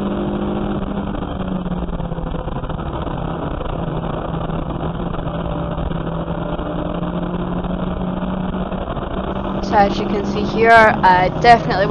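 A race car engine drones steadily from inside the cabin.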